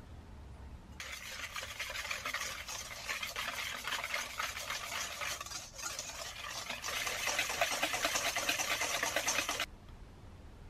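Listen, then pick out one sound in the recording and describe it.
A whisk beats rapidly against a metal bowl, clattering and scraping.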